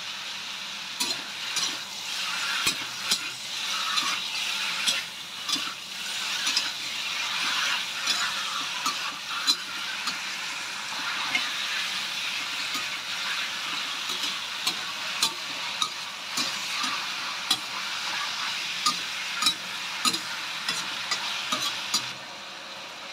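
A metal spatula scrapes and clinks against a wok.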